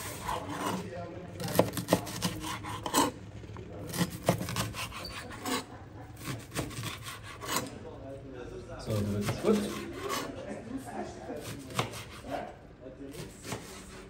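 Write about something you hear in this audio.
A knife chops through vegetables onto a cutting board with sharp knocks.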